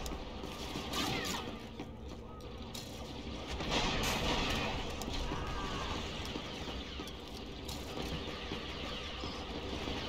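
Laser guns fire in quick bursts nearby.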